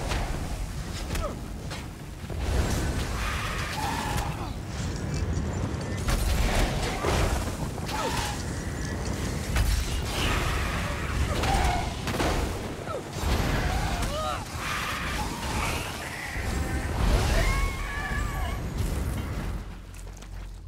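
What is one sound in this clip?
Magic spells crackle and blast in a game battle.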